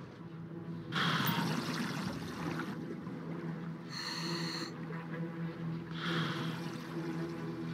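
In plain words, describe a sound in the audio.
Bubbles from a diver's breathing gear gurgle and hiss underwater in bursts.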